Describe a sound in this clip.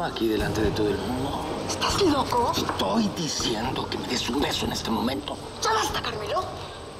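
A man speaks in a low, tense voice up close.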